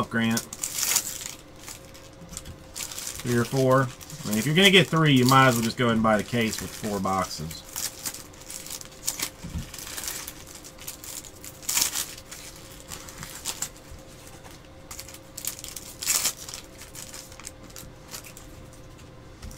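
Cards rustle and flick as hands sort through a pack.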